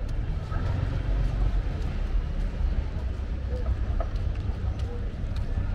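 Water laps gently against a stone wall.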